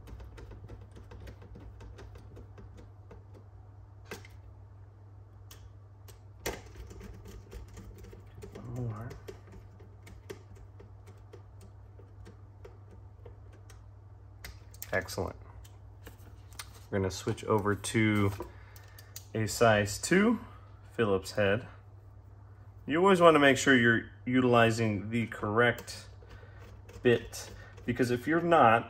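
Small metal tools click and tap against a hard case.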